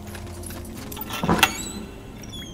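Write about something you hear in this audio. A chest bangs open with a loud clatter.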